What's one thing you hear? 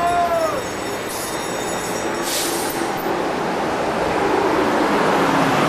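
A bus engine rumbles as the bus drives slowly past.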